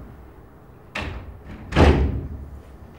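A door thuds shut close by.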